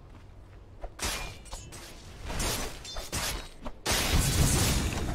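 Video game combat effects crash and whoosh in loud bursts.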